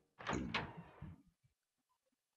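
A heavy wooden door creaks open and thuds.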